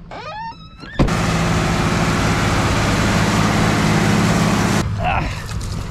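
A tractor engine roars loudly nearby.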